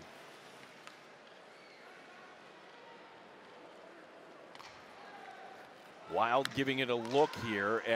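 Ice skates scrape and glide on ice.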